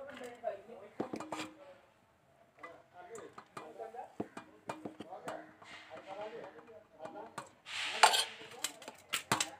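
A metal spoon scrapes and clinks against a metal pot while stirring rice.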